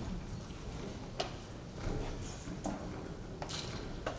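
A stick taps on a wooden floor.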